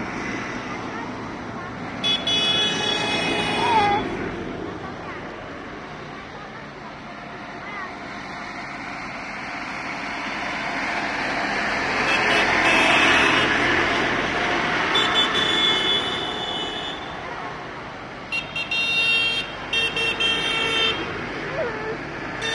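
Tractor engines rumble past one after another, swelling as each draws near and fading as it goes.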